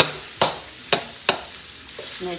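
A metal spatula clanks against a wok.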